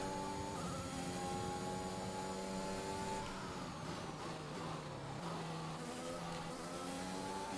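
A racing car engine screams at high revs, dropping in pitch as it brakes and rising again as it speeds up.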